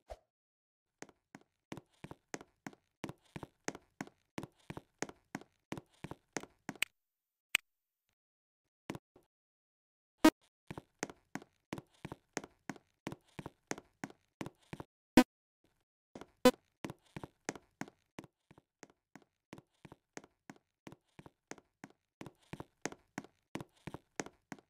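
Footsteps tap at a steady pace on a hard floor.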